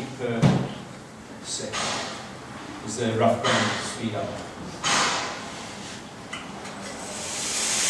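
A man talks calmly nearby.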